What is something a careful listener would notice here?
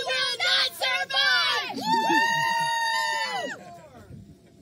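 Young women shout and cheer excitedly close by.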